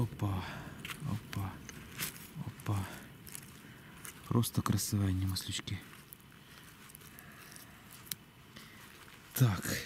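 Dry pine needles rustle as hands pick mushrooms from the ground.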